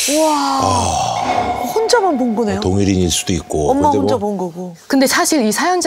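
A woman exclaims loudly in shock.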